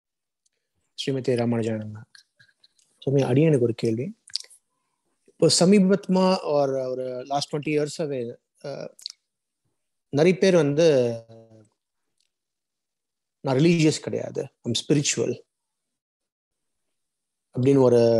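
A man speaks slowly in short phrases over an online call.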